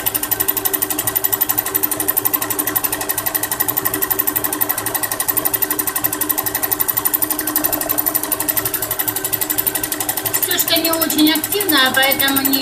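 A sewing machine runs with a fast, steady clatter of stitches.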